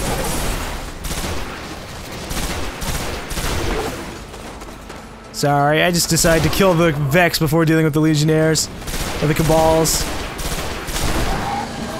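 A heavy energy gun fires in rapid bursts.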